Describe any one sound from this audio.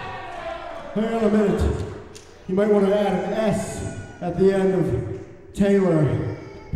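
A bearded man shouts with animation through a microphone in an echoing hall.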